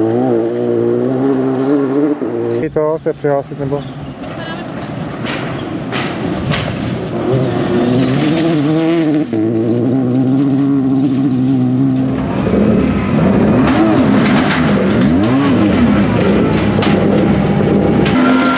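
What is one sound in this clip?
A rally car engine revs hard.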